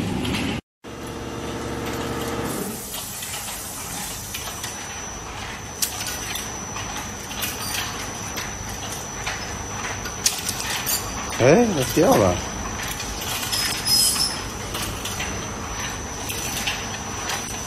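Factory machinery hums and clatters steadily.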